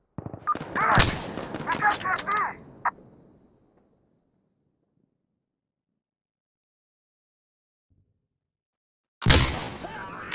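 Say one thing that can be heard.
A sniper rifle fires sharp, loud shots.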